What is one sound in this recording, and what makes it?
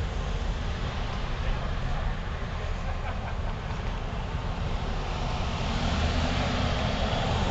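An engine idles close by.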